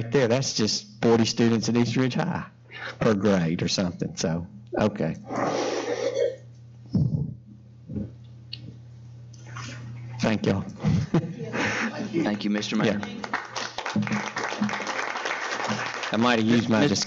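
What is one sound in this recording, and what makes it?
An elderly man speaks steadily into a microphone in a large room.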